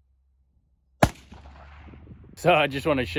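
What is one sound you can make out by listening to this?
A rifle fires a single loud shot outdoors, echoing across open land.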